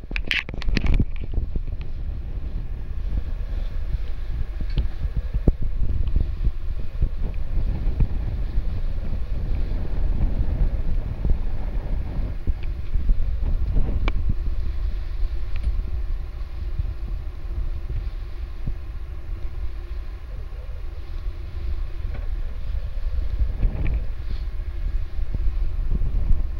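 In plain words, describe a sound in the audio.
Wind buffets loudly outdoors throughout.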